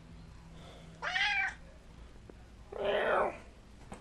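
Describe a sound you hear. A cat meows loudly close by.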